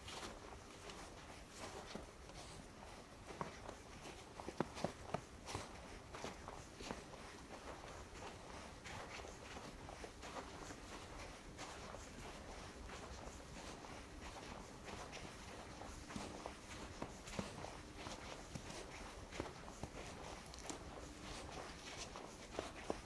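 Footsteps crunch through fresh snow at a walking pace.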